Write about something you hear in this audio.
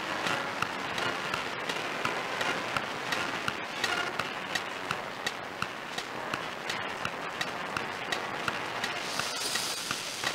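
Drums beat a steady marching rhythm.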